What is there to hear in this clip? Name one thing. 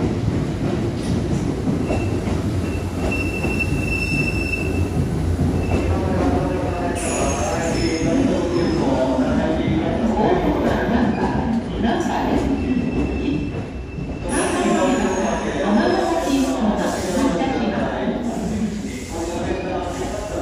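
A train rumbles steadily past through an echoing underground station.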